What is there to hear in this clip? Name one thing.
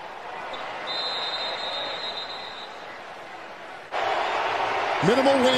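A large stadium crowd roars and murmurs outdoors.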